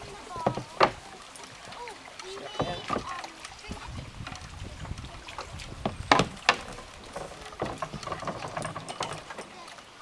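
A paddle knocks against a kayak and a wooden dock.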